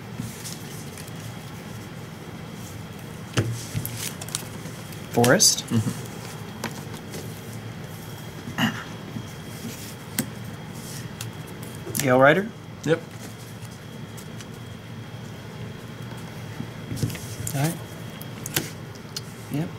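Playing cards tap and slide softly on a table mat.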